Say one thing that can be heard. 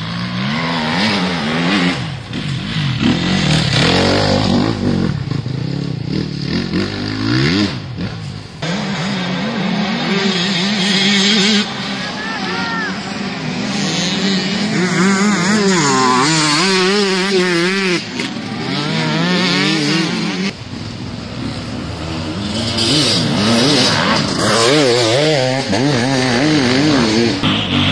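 A dirt bike engine revs and whines, rising and falling in pitch.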